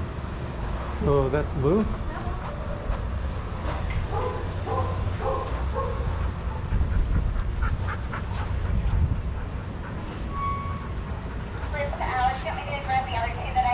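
A dog whines and yelps nearby.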